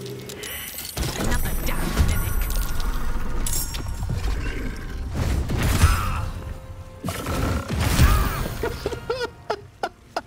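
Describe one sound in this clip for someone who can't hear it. Magic blasts and battle sounds boom and rumble from a video game.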